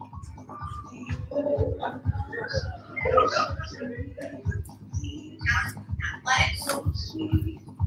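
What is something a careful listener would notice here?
A young girl speaks with animation on a stage.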